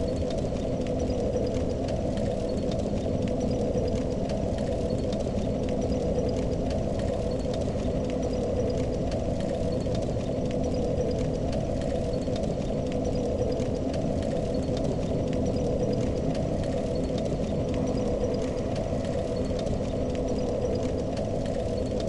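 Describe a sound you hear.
A fire crackles and hisses steadily nearby.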